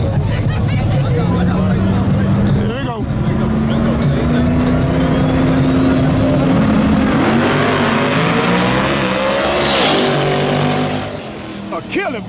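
Race car engines roar at full throttle as the cars launch and speed away.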